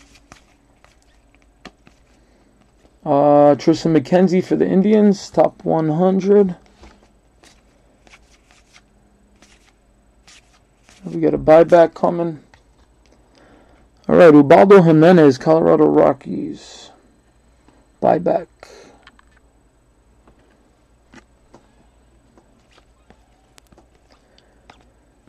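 Trading cards rustle and slide between hands.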